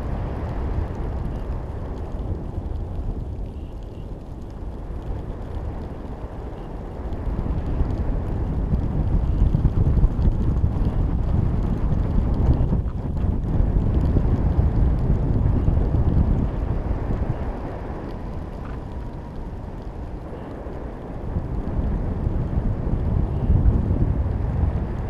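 Wind rushes and buffets loudly, rising and falling in gusts.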